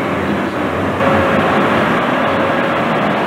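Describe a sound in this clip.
A city bus engine rumbles as the bus turns close by.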